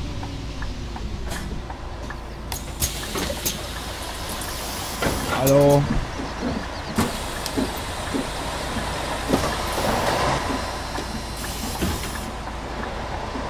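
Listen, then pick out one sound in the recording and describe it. A bus engine idles with a low steady hum.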